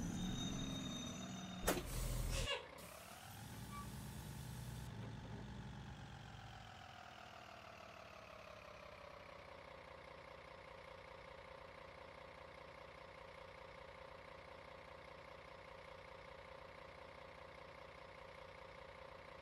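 A bus engine hums, its pitch sinking slowly before settling into a steady idle.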